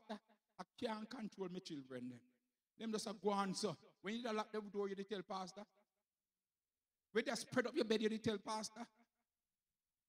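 A man preaches with animation through a microphone.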